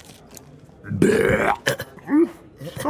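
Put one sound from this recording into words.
A woman lets out a long, loud belch.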